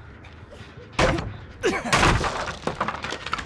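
Wooden boards crack and splinter loudly.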